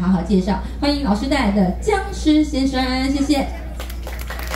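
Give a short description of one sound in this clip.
A woman sings loudly through loudspeakers.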